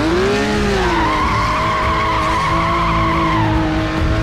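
Tyres screech in a burnout.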